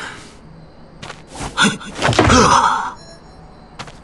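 Wood smashes and splinters.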